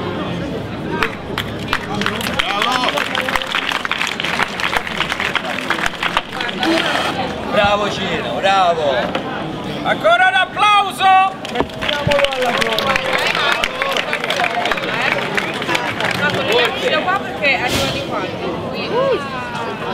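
A crowd of men, women and children chatters outdoors.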